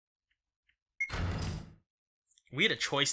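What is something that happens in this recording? A short game chime sounds as a lock opens.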